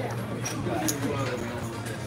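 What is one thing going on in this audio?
Casino chips click against each other.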